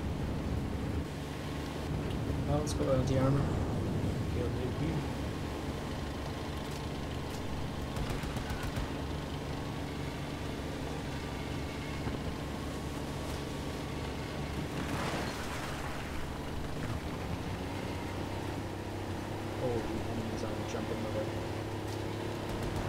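Tank tracks clank and rattle over the road.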